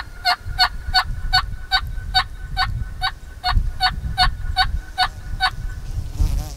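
An animal calls out in a quick, steady series of sharp cries nearby.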